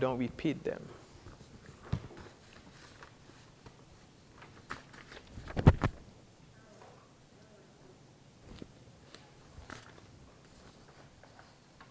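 Paper sheets rustle and shuffle close to a microphone.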